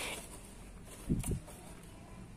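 A small cardboard box is tipped over and knocks softly onto a hard floor.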